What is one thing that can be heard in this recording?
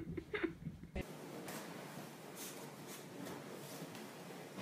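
A small dog rubs and rolls on a blanket, rustling the fabric.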